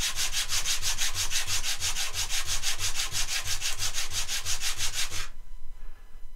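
A wooden block is rubbed back and forth on sandpaper in quick, even strokes.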